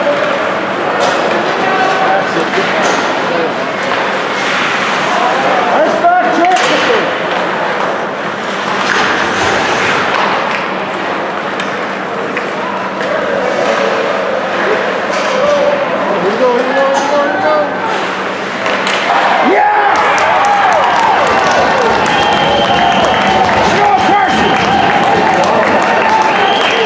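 Spectators cheer and shout from close by.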